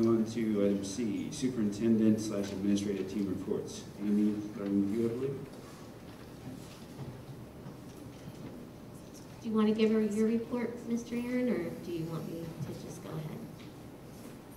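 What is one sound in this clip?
A woman speaks calmly into a microphone, heard through loudspeakers.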